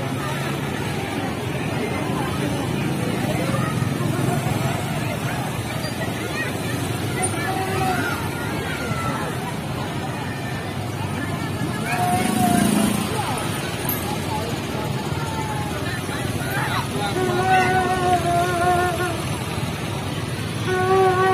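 Motorcycle engines hum and putter as they ride past.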